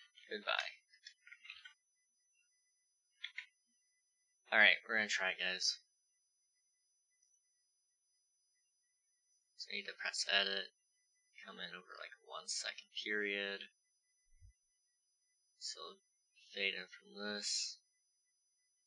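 A young man talks calmly into a headset microphone, in short bursts.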